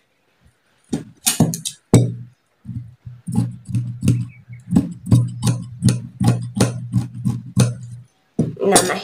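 Scissors snip through cloth in quick, even cuts.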